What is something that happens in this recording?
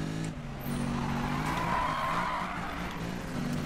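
Tyres hiss and screech on the road through a turn.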